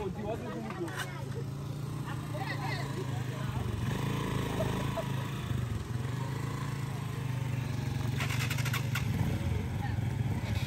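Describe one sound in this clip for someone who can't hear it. Motorcycle engines idle with a low, steady rumble.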